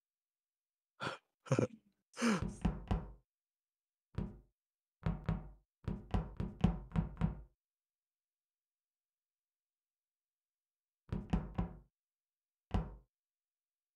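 Quick footsteps patter on a metal floor.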